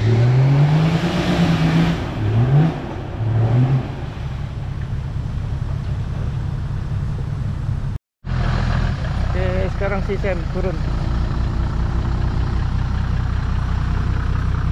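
A four-wheel-drive engine revs hard and rumbles.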